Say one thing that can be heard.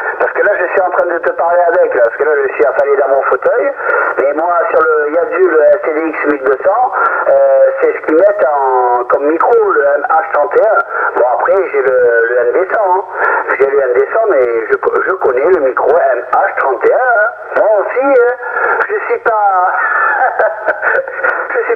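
A voice talks steadily through a tinny, crackling radio loudspeaker.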